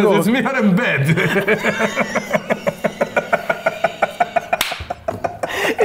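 A young man laughs loudly and helplessly.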